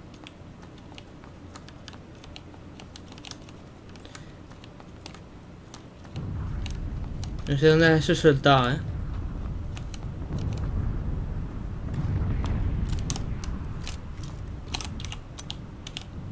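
Footsteps tap on a wooden floor indoors.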